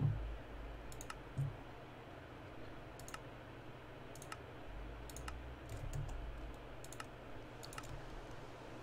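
Menu buttons click softly, several times.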